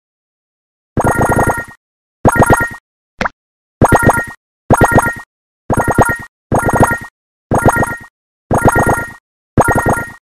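A video game plays short bright chiming jingles again and again.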